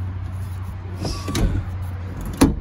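A hand rubs against fabric upholstery.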